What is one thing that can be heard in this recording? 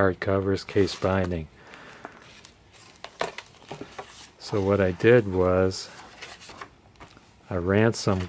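Book pages rustle as they are turned by hand.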